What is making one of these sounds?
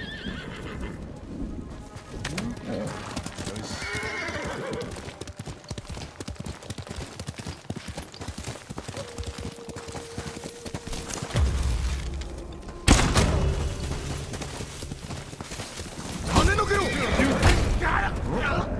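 A horse's hooves thud and crunch through snow.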